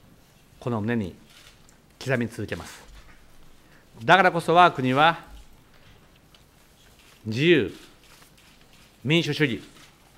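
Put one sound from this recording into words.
A middle-aged man speaks formally and slowly into a microphone, with pauses between phrases.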